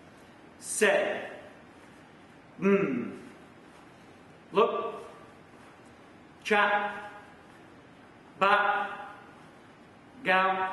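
A man shouts short, sharp calls in a large echoing hall, about every two seconds.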